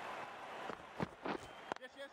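A cricket bat cracks against a ball.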